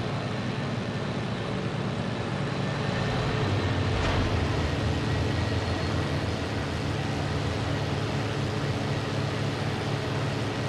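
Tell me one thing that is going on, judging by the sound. A propeller plane's engine drones loudly and steadily.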